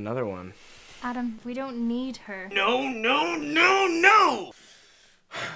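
A young woman speaks close by, emotionally.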